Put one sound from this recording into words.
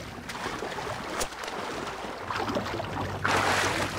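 Water splashes as a swimmer moves through it.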